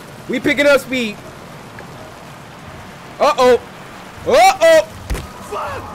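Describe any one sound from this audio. A young man shouts and yells loudly into a microphone.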